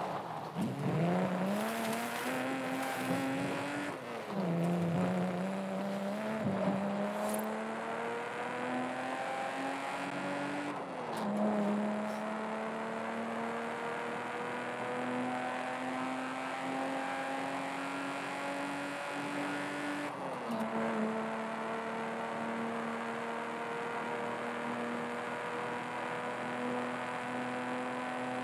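An inline-six sports car engine accelerates hard, shifting up through the gears.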